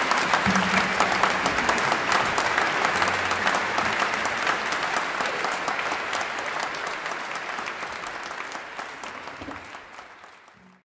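An audience applauds in a large echoing hall, then fades away.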